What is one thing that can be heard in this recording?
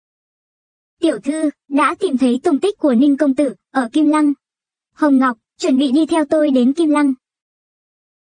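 A young woman talks.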